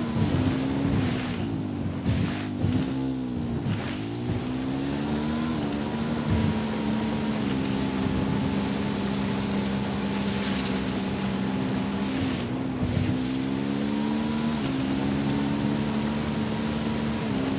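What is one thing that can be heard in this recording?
A motorcycle engine hums and revs up and down as it rides.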